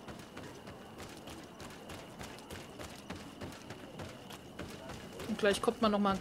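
Footsteps run quickly over packed dirt.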